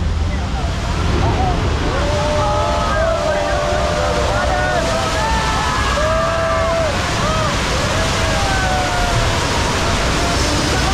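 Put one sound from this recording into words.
Water gushes and splashes loudly.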